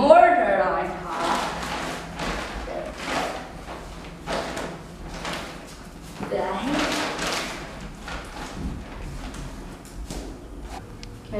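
Loose material rustles and crunches as it is scooped by hand.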